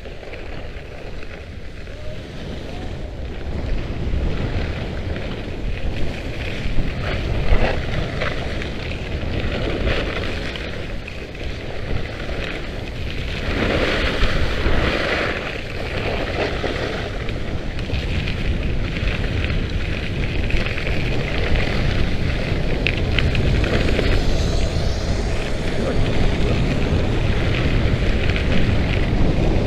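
Wind buffets and rumbles close by, as if outdoors.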